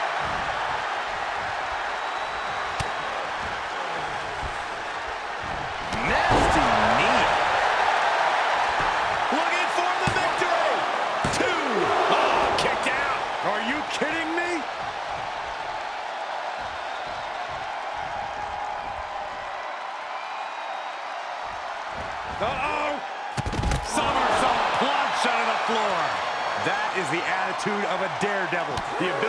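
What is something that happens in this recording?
A large crowd cheers and roars throughout.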